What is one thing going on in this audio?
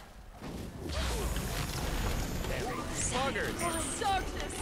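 A loud blast booms and roars.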